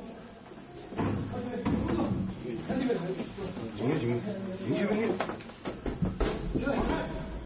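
Several men talk loudly and urgently nearby.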